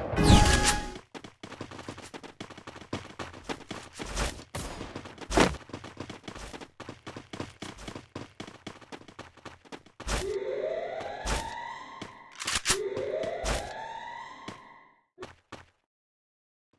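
Footsteps run across hard ground.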